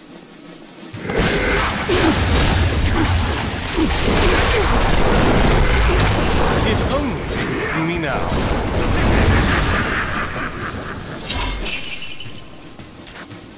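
Magic spells crackle and blast in a fight.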